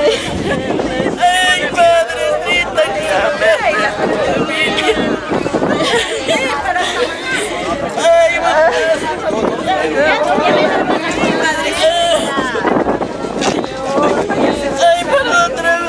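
An elderly woman wails and cries loudly close by.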